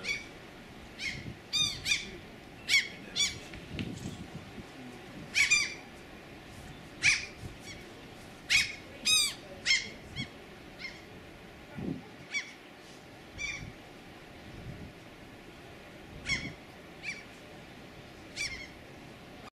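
Seagulls cry repeatedly nearby.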